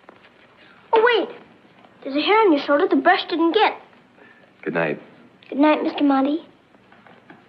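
A young girl speaks softly, close by.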